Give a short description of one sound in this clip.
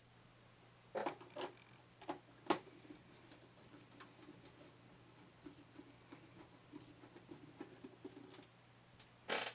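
A screwdriver turns screws with faint clicks.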